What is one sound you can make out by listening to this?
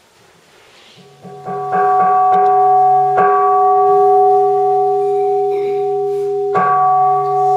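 Two women chant steadily in unison through a microphone and loudspeakers.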